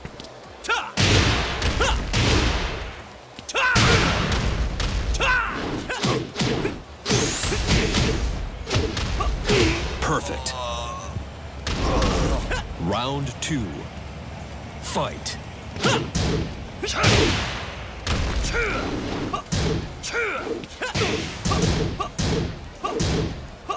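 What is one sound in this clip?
Punches and kicks land with heavy, fast thuds.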